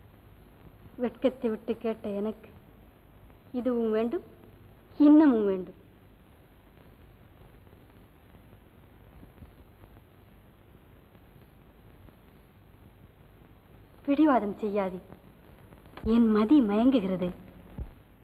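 A young woman speaks with feeling, close by.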